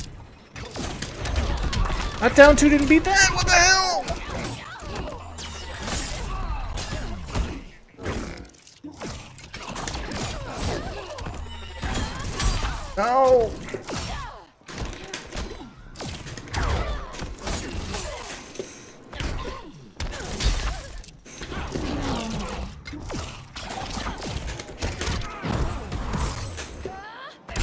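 Punches and kicks land with sharp thuds and whooshes in a fast fight.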